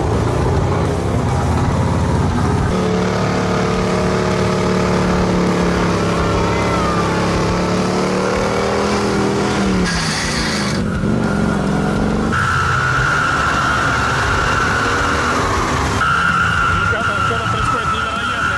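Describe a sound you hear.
A truck engine roars and revs hard.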